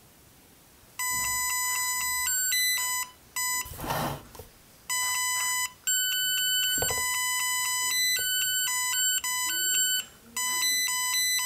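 A small robot plays quick electronic beeps and tones.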